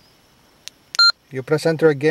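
A handheld radio beeps once.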